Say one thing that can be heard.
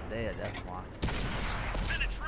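A tank cannon fires with a sharp boom.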